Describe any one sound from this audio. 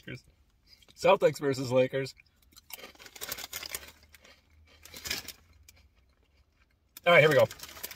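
A man crunches on chips.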